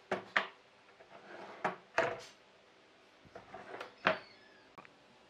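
Wooden boards knock and bump against each other.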